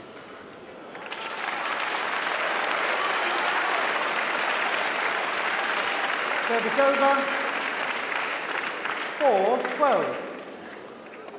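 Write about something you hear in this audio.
A crowd applauds and cheers in a large echoing hall.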